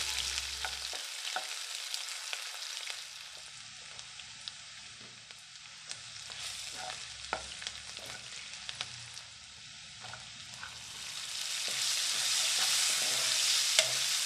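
Onions sizzle steadily in hot oil.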